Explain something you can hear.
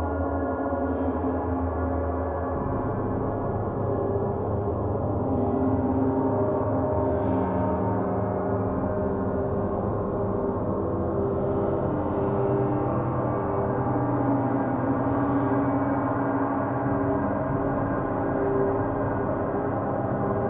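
Soft mallet strikes swell the gongs' ringing now and then.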